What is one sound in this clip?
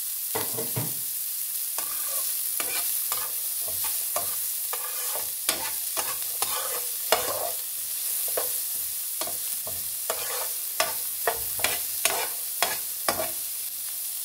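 A metal spoon scrapes and clinks against a frying pan.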